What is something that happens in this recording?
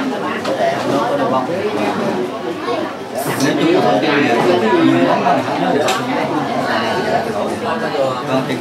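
Men and women talk and murmur together nearby.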